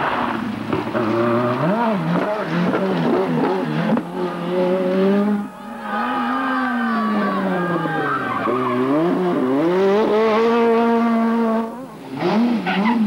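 A rally car engine revs hard, rising and falling in pitch as gears change.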